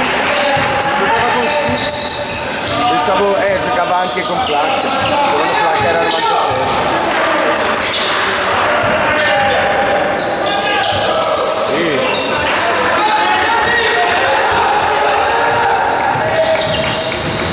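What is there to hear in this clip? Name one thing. A basketball bounces on a hardwood court as a player dribbles.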